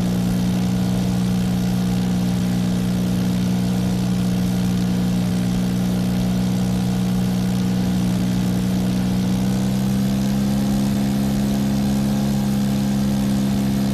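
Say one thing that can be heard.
A small propeller engine drones steadily and rises slightly in pitch.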